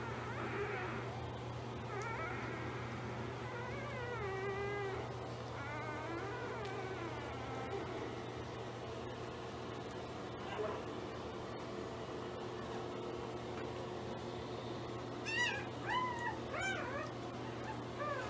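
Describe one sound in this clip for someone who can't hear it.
Newborn puppies squeak and whimper up close.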